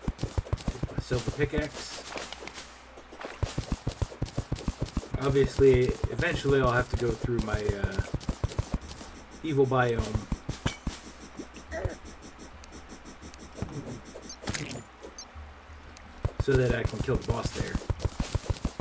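A man speaks into a microphone in short, casual bursts.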